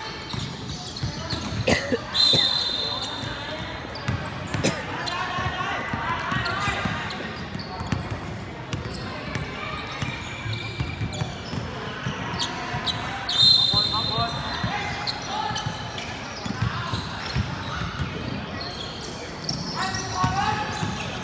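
A crowd of young voices chatters and calls out in a large echoing hall.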